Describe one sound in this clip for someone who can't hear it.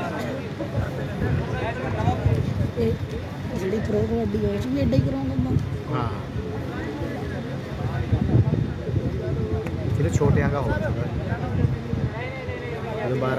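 A man commentates excitedly over a loudspeaker.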